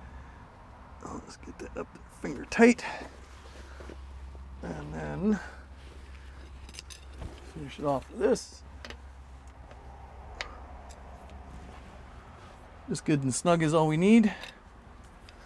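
A man talks calmly nearby, in short bursts.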